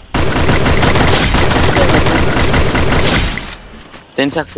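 A rifle fires loud shots in quick succession.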